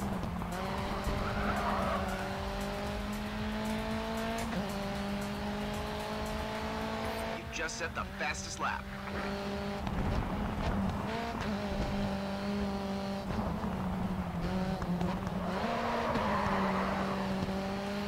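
Tyres screech through a corner.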